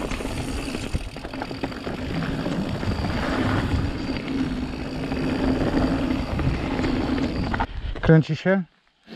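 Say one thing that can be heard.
Wind buffets loudly, as if heard while riding fast.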